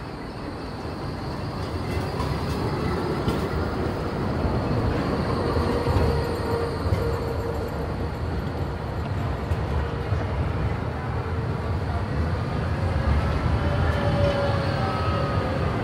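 A tram rolls past close by with a low rumble.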